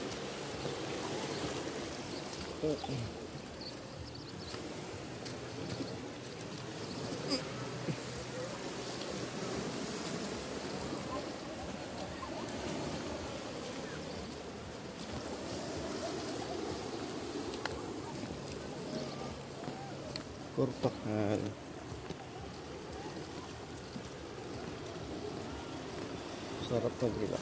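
Small waves lap and splash against rocks.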